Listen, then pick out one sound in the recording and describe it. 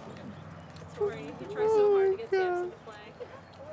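A dog howls and yelps loudly.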